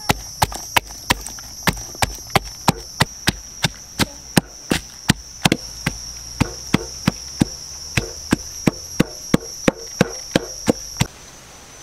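A wooden pestle pounds steadily in a wooden mortar, thudding about three times a second.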